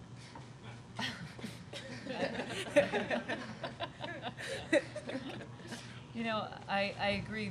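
A middle-aged woman speaks cheerfully into a microphone.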